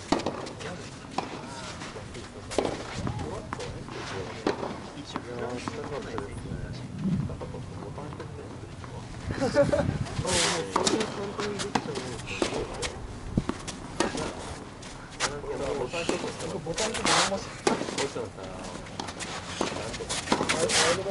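A tennis ball pops sharply off racket strings.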